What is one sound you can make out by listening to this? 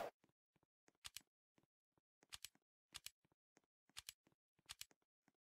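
Menu buttons click sharply, several times.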